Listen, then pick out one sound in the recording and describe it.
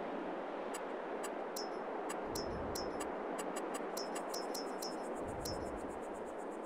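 Short interface clicks tick several times in quick succession.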